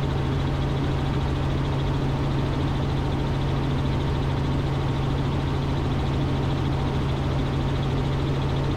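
A helicopter's engine and rotor drone loudly and steadily.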